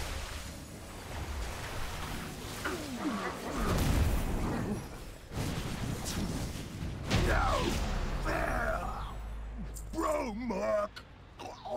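Magic spells whoosh and crackle in a busy fight.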